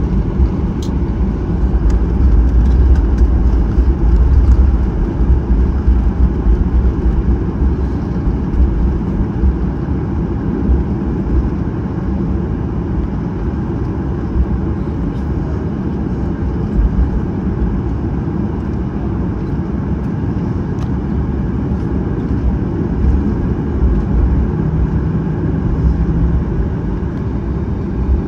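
A jet engine hums and roars steadily.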